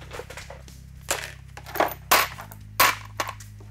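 A plastic box clatters onto a workbench.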